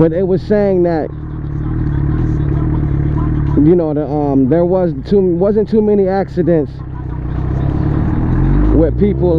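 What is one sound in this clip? A motorcycle engine idles and revs in short bursts.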